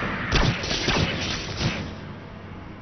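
Gunshots bang loudly in a row.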